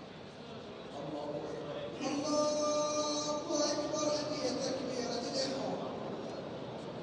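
An elderly man chants loudly through a microphone, echoing in a large space.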